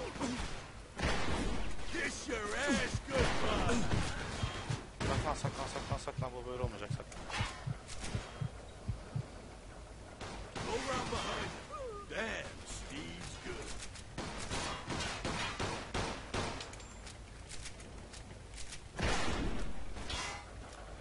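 Gunshots crack loudly in a video game.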